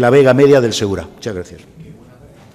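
An elderly man speaks briefly into a microphone.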